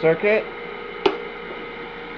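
A circuit breaker switch clicks sharply.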